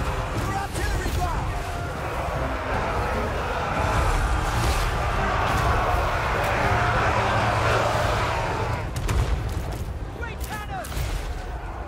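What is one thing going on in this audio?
Cannons fire with sharp booms.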